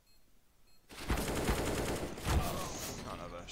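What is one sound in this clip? Rifle shots fire in a quick burst.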